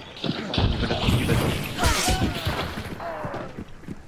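A heavy blade swings through the air and strikes.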